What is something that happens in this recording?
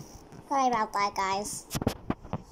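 A young girl speaks in a high voice close to the microphone.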